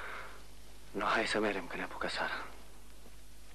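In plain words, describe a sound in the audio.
A man speaks briefly and firmly, close by.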